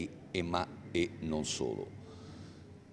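A middle-aged man speaks calmly into close microphones.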